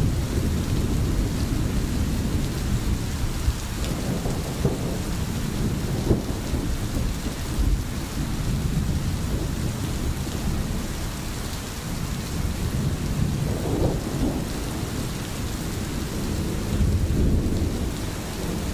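Rain falls steadily all around.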